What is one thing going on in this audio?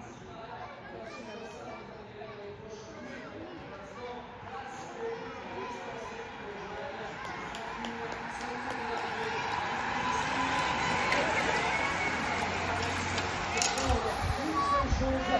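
Spectators at the roadside cheer and call out.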